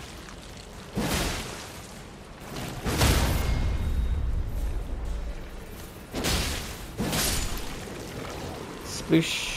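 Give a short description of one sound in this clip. Heavy sword blows slash and thud into a creature in short bursts.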